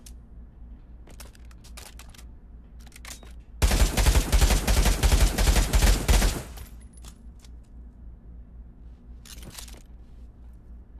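Metal weapon parts click and clatter.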